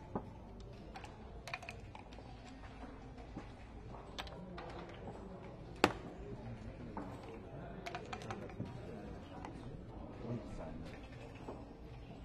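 Dice rattle in a cup and tumble onto a wooden board.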